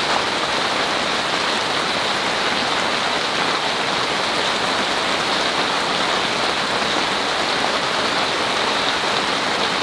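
Rain patters steadily on a tent roof.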